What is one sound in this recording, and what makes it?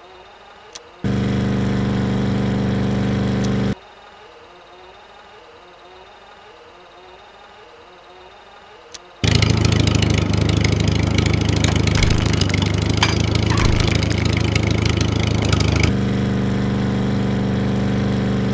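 A small car engine hums steadily.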